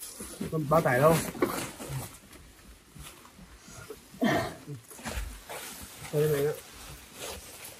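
Young men talk in short bursts close by.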